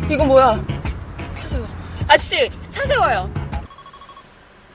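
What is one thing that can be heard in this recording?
A young woman exclaims in alarm.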